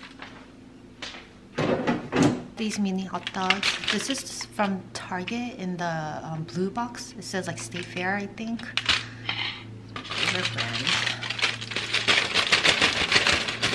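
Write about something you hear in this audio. Aluminium foil crinkles and rustles as hands fold it.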